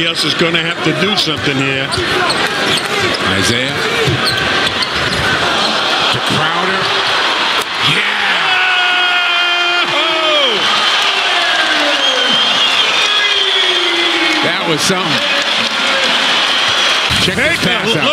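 A large crowd cheers and roars in an echoing arena.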